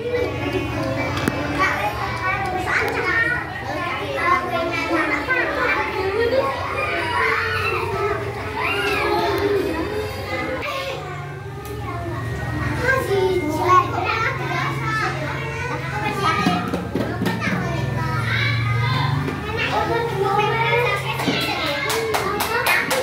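Young children talk close by.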